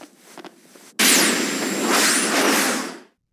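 A loud electric whoosh crackles and fades.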